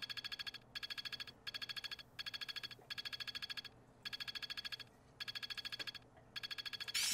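Rapid electronic ticks play in quick bursts as game points tally up.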